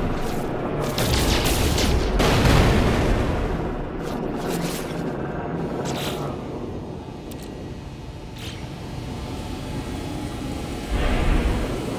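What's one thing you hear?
A spaceship engine rumbles steadily.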